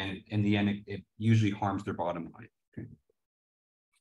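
A young man speaks calmly through a microphone, as if on an online call.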